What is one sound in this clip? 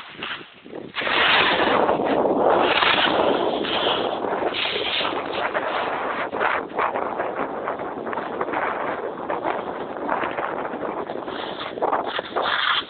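Wind rushes and buffets loudly.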